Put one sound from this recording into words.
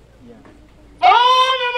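A man shouts a drill command loudly.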